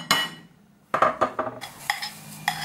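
Batter pours into a hot pan.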